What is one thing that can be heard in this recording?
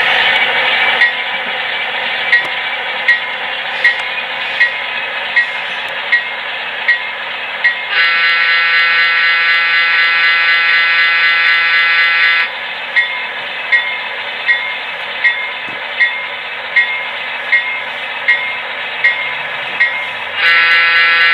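Model train wheels click rhythmically over rail joints.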